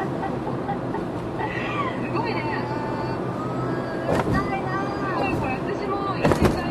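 A car engine hums steadily as tyres roll on the road.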